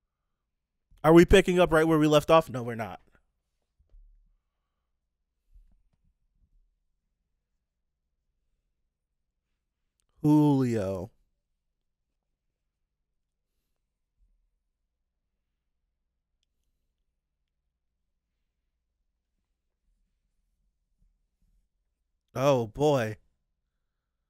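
A man speaks close into a microphone in short bursts.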